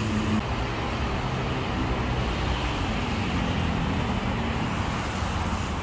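A motorbike engine hums by.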